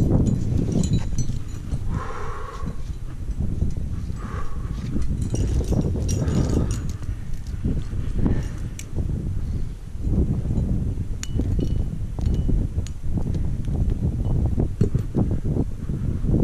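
Metal climbing gear clinks and jingles.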